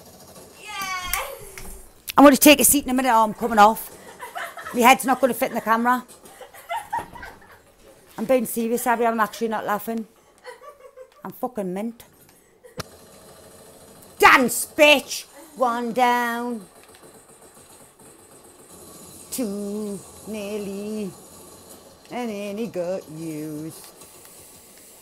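A middle-aged woman talks with excitement close to a microphone.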